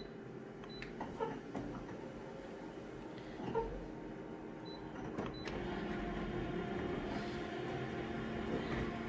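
An office copier whirs and hums, growing louder as it starts printing.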